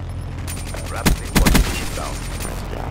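A rifle fires a quick burst of gunshots.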